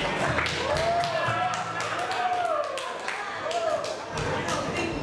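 Young people clap and cheer with laughter.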